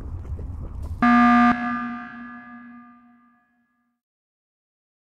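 A loud electronic alarm blares once, then rings out and fades away.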